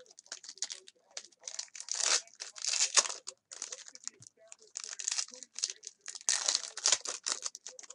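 Hands crinkle and tear open a foil wrapper.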